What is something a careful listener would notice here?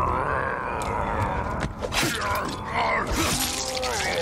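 A struggle with thuds and grunts breaks out up close.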